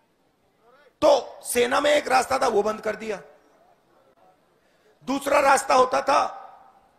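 A man speaks forcefully into a microphone to a crowd, outdoors.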